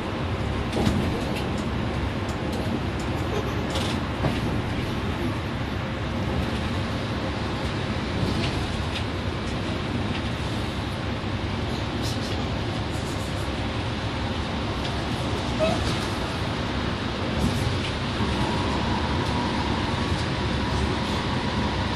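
Small rattles and clicks come from inside the bus.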